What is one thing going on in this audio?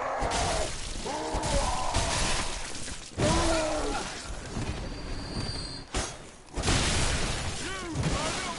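Creatures growl and shriek.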